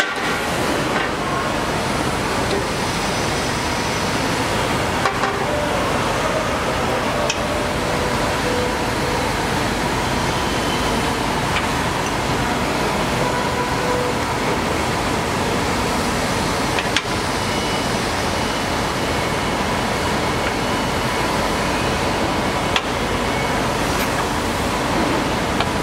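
Metal parts click and clack as a gas strut is fitted by hand.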